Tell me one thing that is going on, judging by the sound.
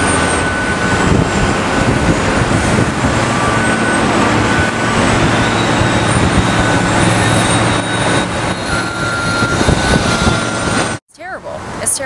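Construction machinery rumbles steadily outdoors.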